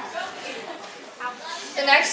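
A young woman speaks through a microphone in a large echoing hall.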